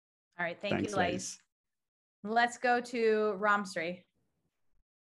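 A woman speaks warmly over an online call.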